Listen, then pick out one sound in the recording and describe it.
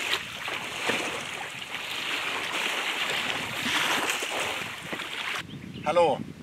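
Water splashes around feet as an inflatable boat is pushed onto the shore.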